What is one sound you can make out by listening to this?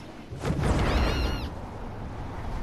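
A bright chime rings as a flying ring is passed.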